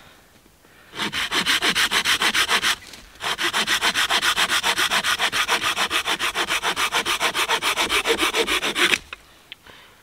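A hand saw rasps quickly back and forth through a branch.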